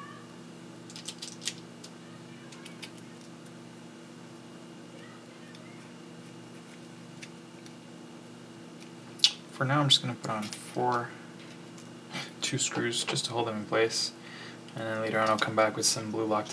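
Small parts click and rattle as they are handled.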